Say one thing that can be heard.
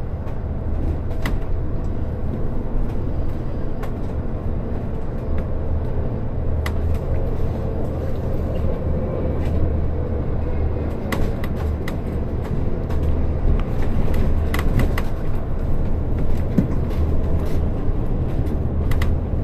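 A bus body rattles and clicks over the road.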